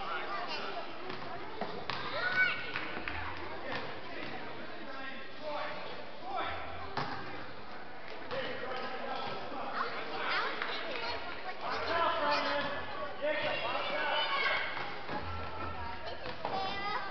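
Spectators in a large echoing gym chatter and call out throughout.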